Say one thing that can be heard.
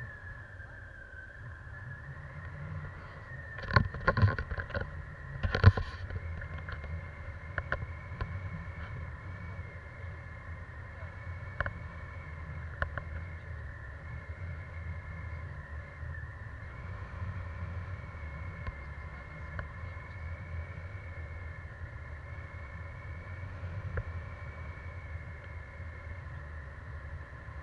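Wind buffets a microphone in flight outdoors.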